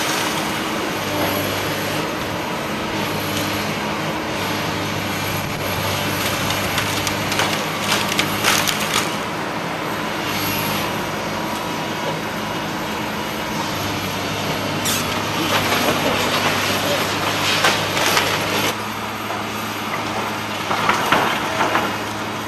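Timber and masonry debris crash and crack as an excavator tears down a building.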